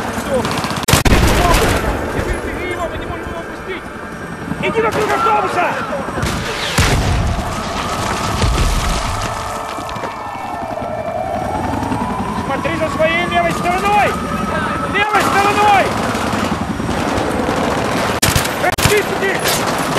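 Gunshots crack in loud bursts.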